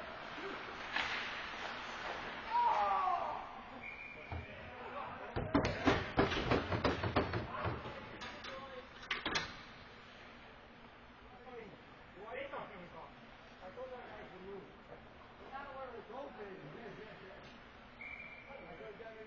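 Skates scrape and glide across the ice in a large echoing rink.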